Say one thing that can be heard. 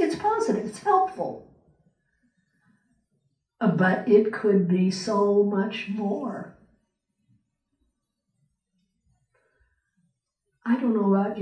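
An elderly woman speaks slowly and calmly through a microphone in a hall with a slight echo, pausing between phrases.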